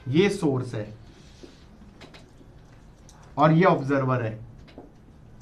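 A man speaks calmly into a nearby microphone.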